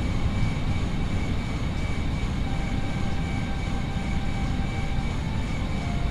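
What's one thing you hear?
Jet engines rumble steadily with a high whine.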